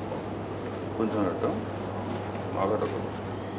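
A woman speaks softly.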